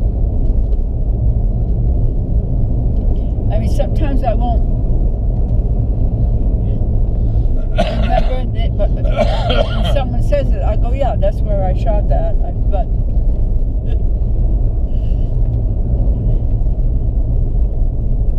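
A car engine hums steadily at low pitch.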